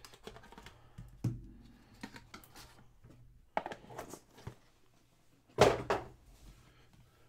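Cardboard and plastic wrappers rustle and click as hands handle packs of cards.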